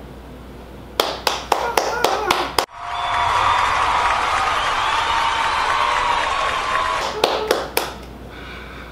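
A young man and a young woman clap their hands close by.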